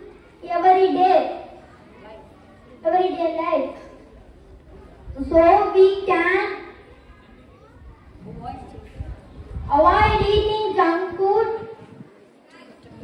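A boy speaks loudly into a microphone through a loudspeaker, in bursts with pauses.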